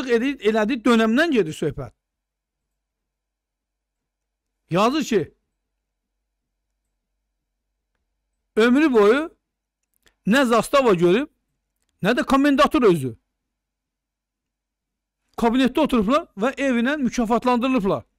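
An older man speaks with animation into a close microphone, in bursts with long pauses.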